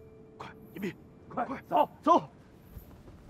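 A man speaks briefly in a low voice.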